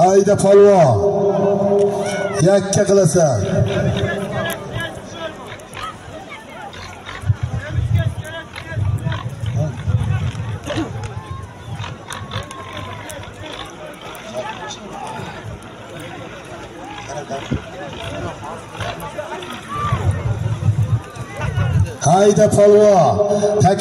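A large crowd of men shouts and chatters outdoors.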